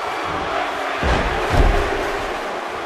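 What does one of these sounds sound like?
A wrestler slams onto the mat with a heavy thud.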